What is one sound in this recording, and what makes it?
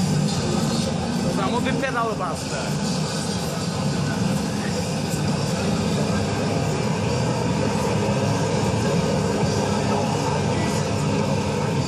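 An arcade racing game plays loud engine roars.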